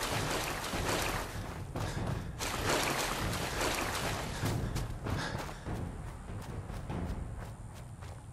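Footsteps crunch steadily through dry grass and dirt.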